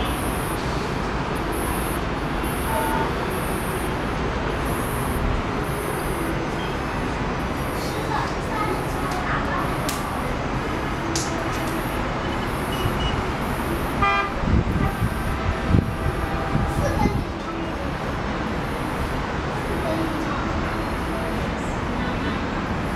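Distant traffic hums steadily far below.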